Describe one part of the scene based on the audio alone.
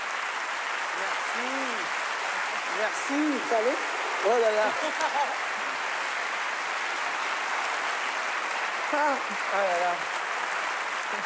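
A woman exclaims and talks over the applause.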